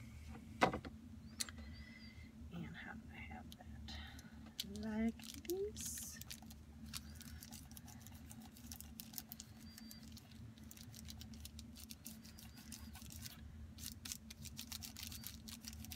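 Paper rustles and crinkles as hands press and smooth it.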